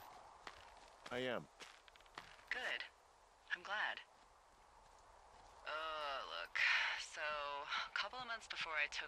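A man talks animatedly into a close microphone.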